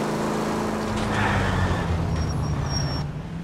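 A car engine drops in pitch as the car slows for a turn.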